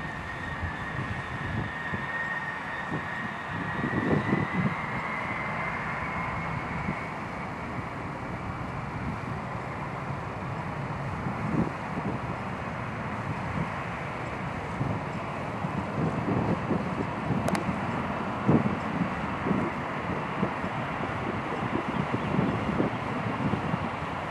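A large jet's engines roar and whine as it taxis toward the listener.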